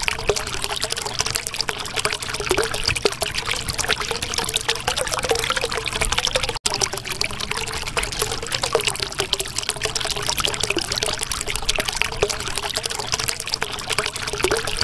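Water bubbles and gurgles steadily.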